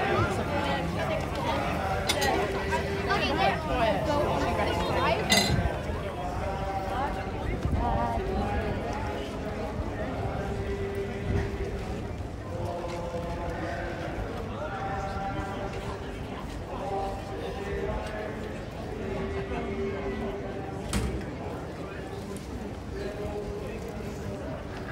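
Men and women chatter all around outdoors.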